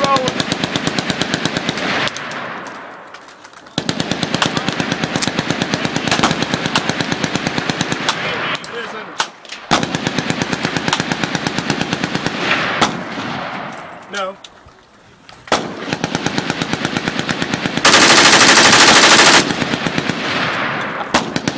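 A submachine gun fires long full-auto bursts outdoors.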